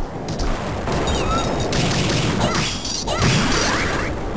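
A bright chime rings out for a level-up.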